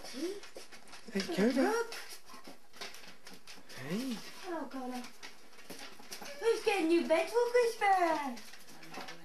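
Dogs whine and yelp with high, rising and falling cries.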